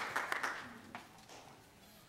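An audience applauds in a large hall, and the applause quickly fades.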